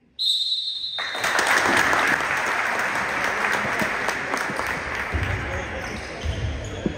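A crowd in an echoing gym cheers and claps.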